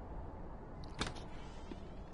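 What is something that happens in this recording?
A door latch clicks open.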